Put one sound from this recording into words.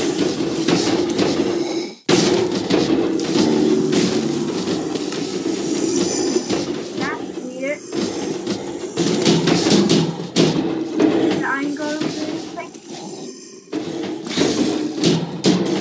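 Blows thud as blocky creatures are struck in a video game.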